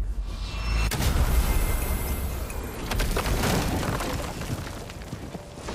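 A heavy magical door rumbles and shimmers as it opens.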